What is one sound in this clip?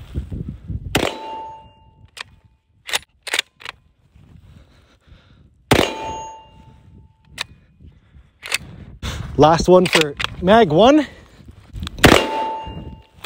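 A rifle fires with a sharp crack that rings out briefly.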